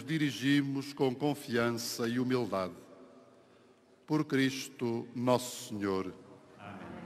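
An elderly man chants a prayer into a microphone, heard over loudspeakers outdoors.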